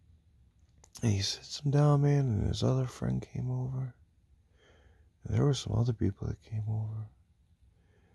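A man speaks quietly and drowsily, very close.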